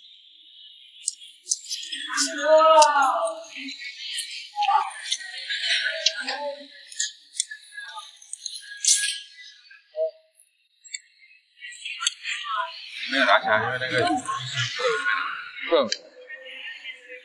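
A young man slurps and chews food noisily close to a microphone.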